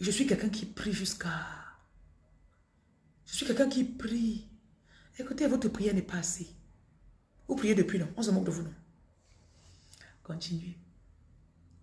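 A woman speaks with feeling close to a microphone, in short bursts with pauses.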